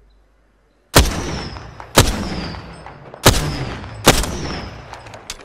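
A rifle fires several loud shots, each ringing out and fading.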